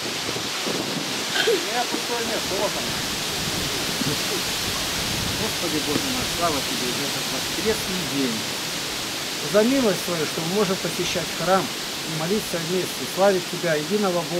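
A group of children and an elderly man sing together outdoors.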